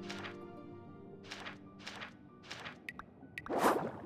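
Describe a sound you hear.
A page turns with a soft swish.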